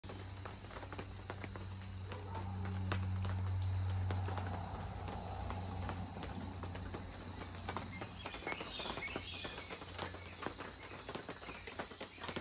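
Rain patters steadily on a tent canvas and the ground outdoors.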